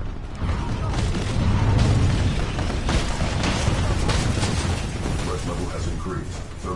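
Gunfire and explosions rumble heavily.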